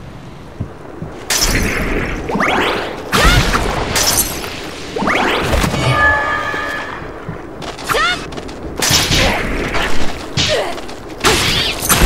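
Magic blasts whoosh and crackle.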